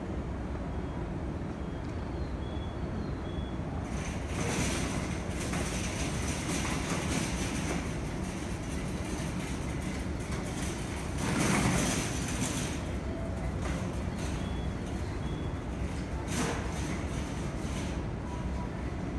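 A stationary train's engine idles with a low steady rumble.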